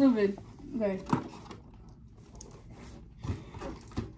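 Cardboard rustles as a box is opened.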